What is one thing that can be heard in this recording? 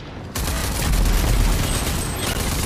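A blast booms and crackles.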